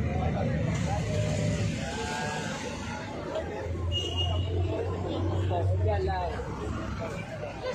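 Several people talk and call out nearby outdoors.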